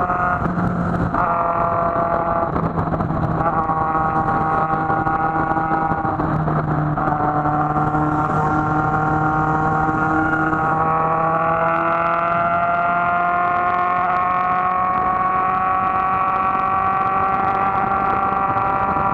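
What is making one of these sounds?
A motorcycle engine hums steadily up close, its pitch shifting as it changes speed.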